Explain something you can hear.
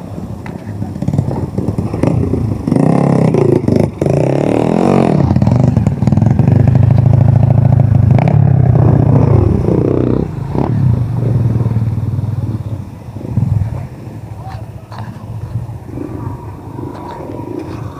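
Dirt bike engines rev and rumble nearby, then fade into the distance.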